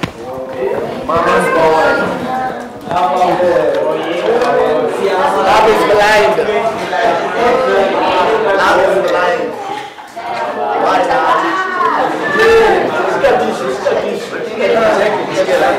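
A man speaks calmly and clearly, close by, in a room with a slight echo.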